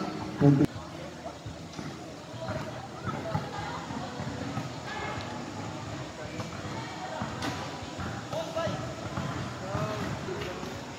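Young players call out to each other on an outdoor court.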